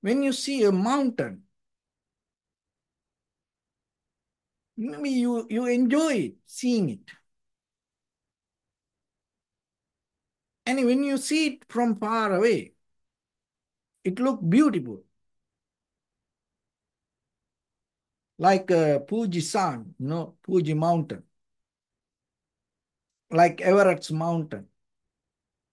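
A man speaks calmly into a microphone in short phrases, with silent pauses between them.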